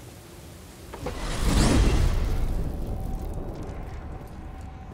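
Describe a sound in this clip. A loud magical whoosh swells and bursts, then fades.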